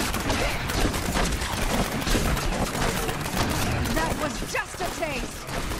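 Rapid volleys of arrows whoosh through the air.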